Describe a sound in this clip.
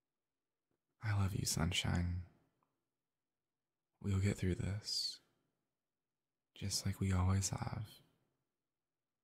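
A young man speaks softly and gently, close to the microphone.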